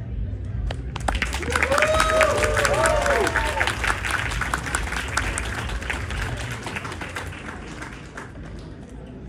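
A crowd applauds and cheers.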